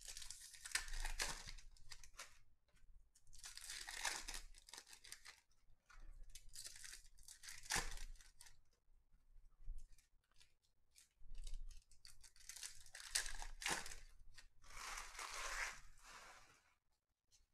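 Foil card wrappers crinkle and tear as hands open them.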